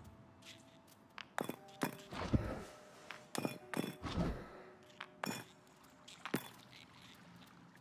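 Stone puzzle pieces slide and click into place.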